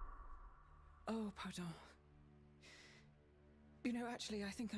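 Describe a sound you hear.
An elderly woman speaks softly and sadly.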